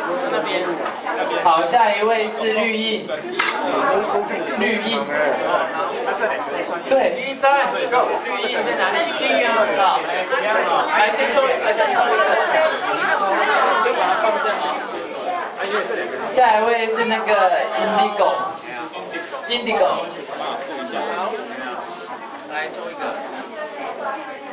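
A young man speaks calmly into a microphone through a loudspeaker.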